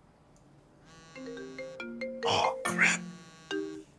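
A phone rings with a tinkling melody.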